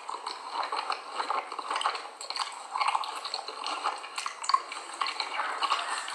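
A plastic spoon scoops cornstarch.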